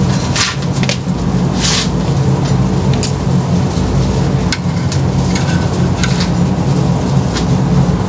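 A hand knocks and clicks against a plastic appliance housing.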